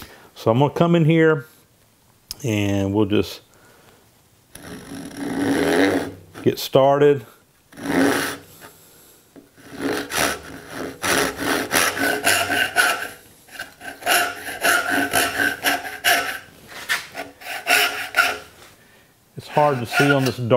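A hand saw cuts back and forth through wood.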